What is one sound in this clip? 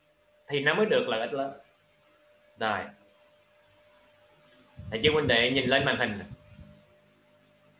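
A young man speaks calmly and closely into a microphone, in short phrases with pauses.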